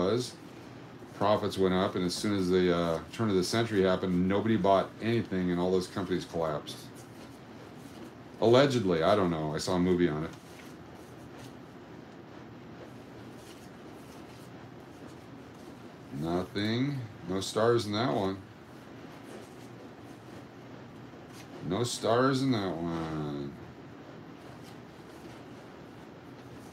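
Paper bills rustle and flick softly as they are counted by hand.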